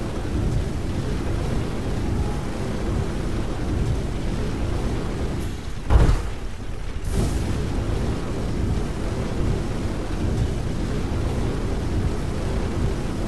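A heavy mechanical walker stomps along with a low rumbling clank of footsteps.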